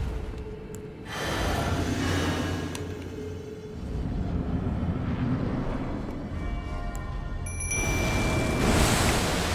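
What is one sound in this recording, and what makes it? A magic spell bursts with a shimmering whoosh.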